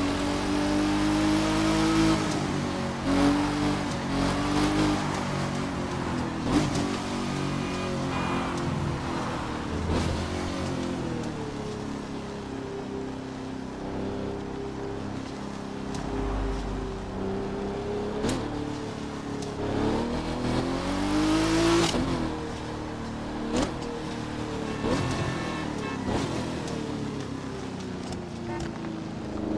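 A car engine revs up and down, changing gears.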